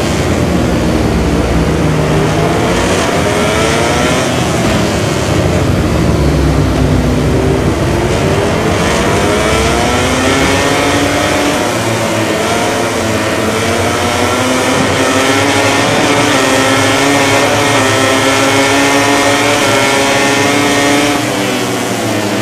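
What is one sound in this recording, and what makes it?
Motorcycle engines roar and rise and fall in pitch as the bikes race.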